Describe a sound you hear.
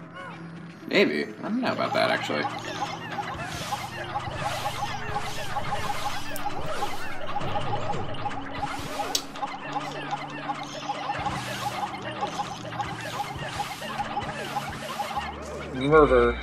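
Many tiny creatures chirp and chatter busily in a game.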